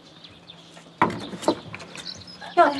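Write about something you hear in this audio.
A wooden door rattles and creaks as it is pushed open.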